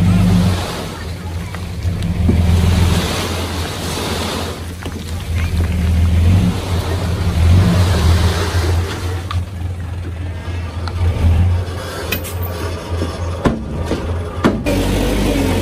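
A truck engine rumbles and revs up and down.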